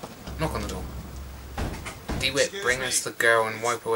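A fist knocks on a wooden door.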